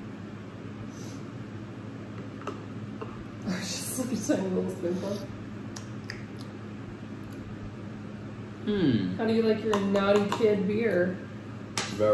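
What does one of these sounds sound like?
A spoon clinks against a mug.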